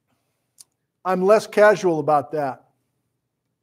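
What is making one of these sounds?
A middle-aged man speaks calmly and close to a clip-on microphone.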